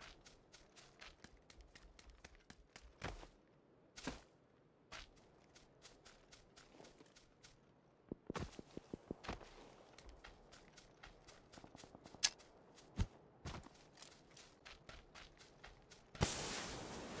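Footsteps run over grass and ground.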